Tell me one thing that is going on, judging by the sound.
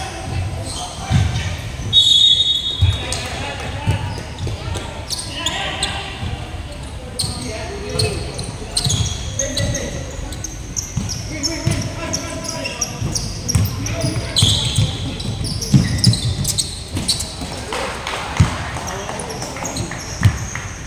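A basketball bounces on the floor with dull, echoing thuds.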